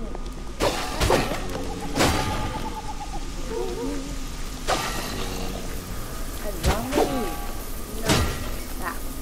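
Sword blows land on enemies with sharp, heavy thuds.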